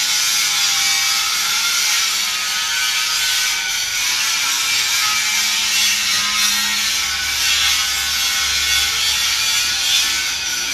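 A metal lathe whirs and grinds steadily.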